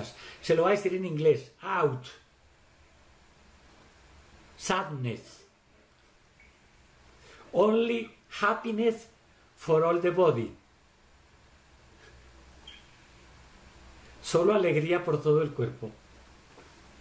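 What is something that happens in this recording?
An older man speaks calmly and slowly over an online call, with long pauses.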